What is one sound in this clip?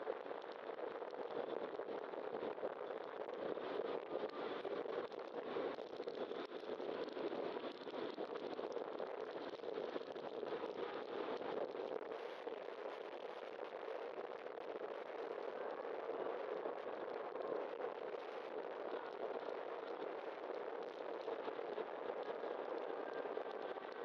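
Wind rushes steadily past, outdoors.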